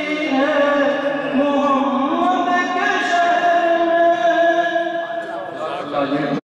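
A man chants in a long, melodic recitation through a microphone, echoing in a hall.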